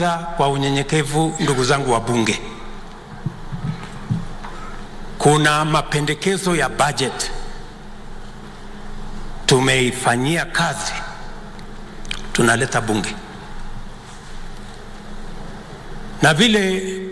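A man speaks with animation into a microphone, pausing between phrases.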